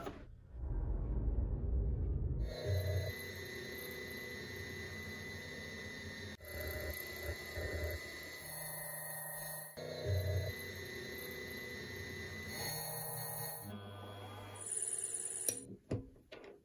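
A lathe motor hums and whines steadily.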